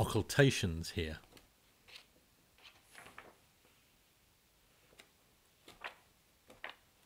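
Book pages rustle and flap as they are turned.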